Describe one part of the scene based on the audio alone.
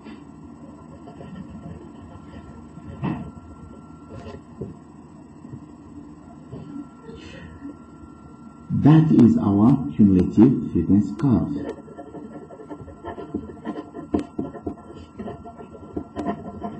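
A pen scratches across paper up close.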